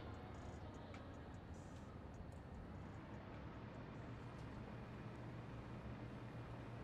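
Machines hum steadily with a low drone.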